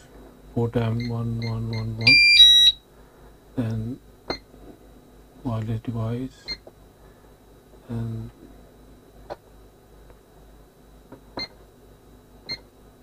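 An alarm keypad beeps briefly each time a button is pressed.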